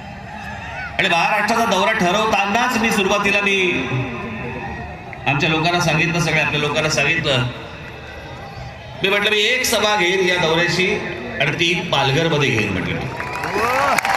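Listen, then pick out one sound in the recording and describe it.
A man speaks forcefully through loudspeakers, in bursts with pauses.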